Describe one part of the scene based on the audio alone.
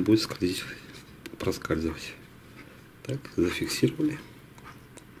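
Plastic parts click and rattle as hands handle them.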